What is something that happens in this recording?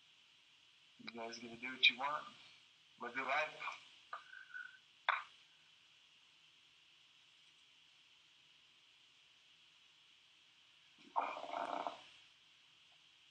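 A man speaks in short, halting bursts over an online call.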